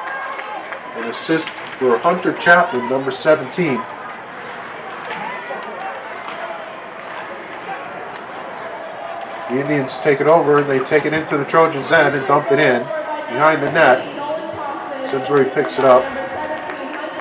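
A crowd of spectators cheers and shouts loudly in an echoing rink.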